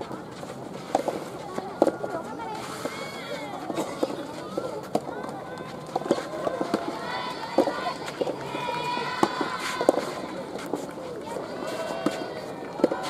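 Rackets strike a soft tennis ball back and forth outdoors.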